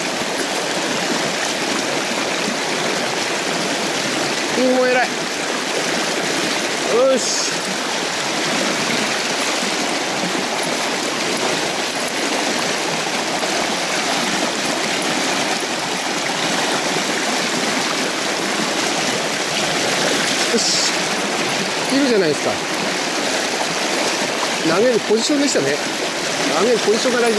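River water rushes and splashes steadily close by.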